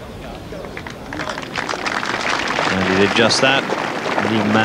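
A large crowd cheers and applauds, swelling louder.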